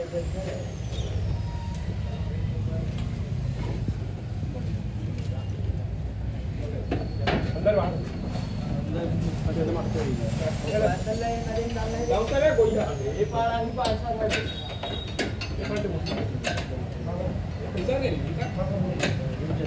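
Metal parts clank and knock as a heavy roof is fitted.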